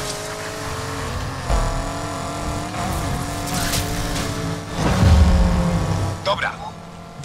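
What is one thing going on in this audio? A car engine roars and revs at high speed.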